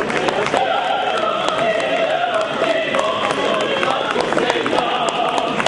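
A crowd applauds with scattered claps.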